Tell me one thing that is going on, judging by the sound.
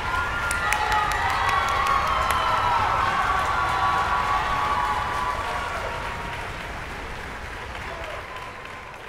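An orchestra plays a held chord in a large echoing hall and fades away.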